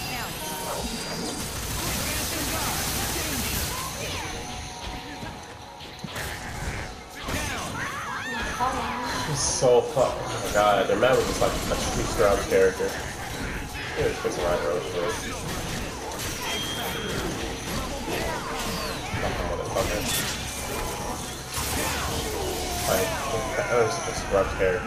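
Fighting sound effects of punches, blasts and explosions play rapidly.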